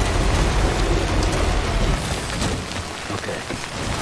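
A car door clunks.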